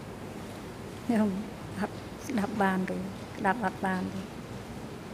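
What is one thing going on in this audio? An elderly woman speaks softly into a microphone.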